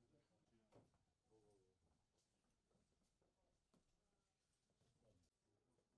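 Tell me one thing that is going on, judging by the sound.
Several men talk quietly among themselves nearby.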